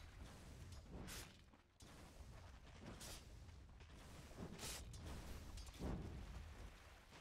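Short whooshing spell effects sound again and again.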